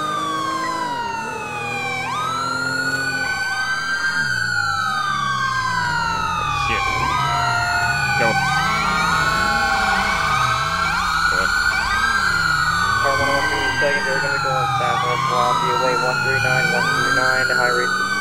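Several police sirens wail and overlap, sweeping up and down.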